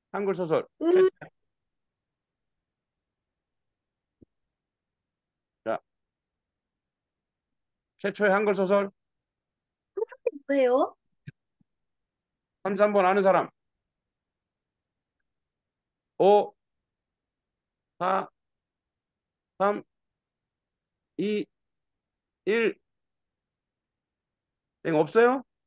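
A man speaks in short, spaced-out phrases over an online call.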